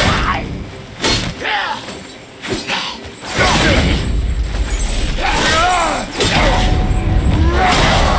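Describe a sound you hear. Metal weapons clash and strike in a fight.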